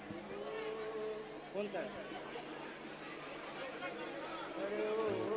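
A young man sings with feeling into a microphone, heard over loudspeakers.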